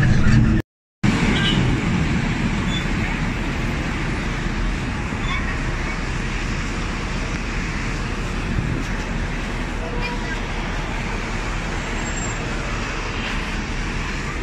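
A bus engine rumbles and idles close by.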